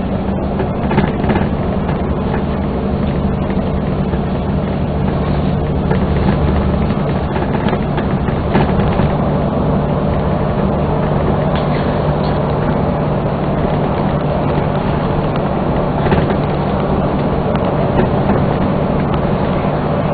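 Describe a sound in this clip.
A vehicle's engine hums steadily while driving along a highway.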